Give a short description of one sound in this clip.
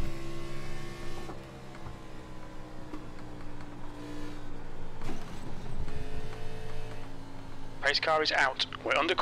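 A race car engine drones steadily and shifts pitch as it changes gear.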